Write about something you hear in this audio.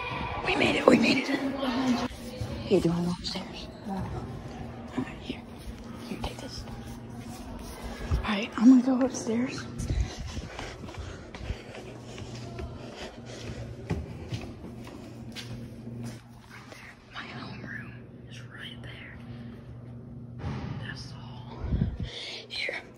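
Footsteps tap on a tiled floor in an echoing hallway.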